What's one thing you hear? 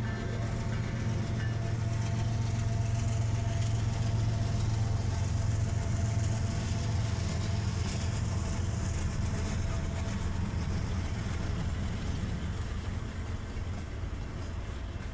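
Diesel locomotives rumble past with a deep, steady drone that slowly eases off.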